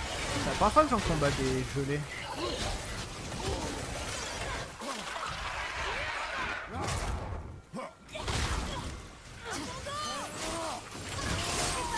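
Game explosions and magic blasts boom.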